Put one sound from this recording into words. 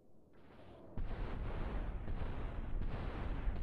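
An explosion booms and fire roars.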